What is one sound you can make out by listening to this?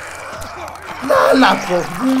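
A man growls and shouts in a struggle.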